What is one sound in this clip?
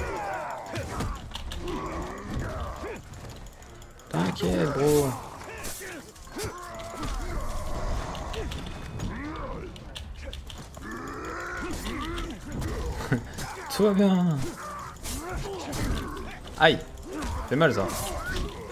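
Weapons clash and strike in a game fight.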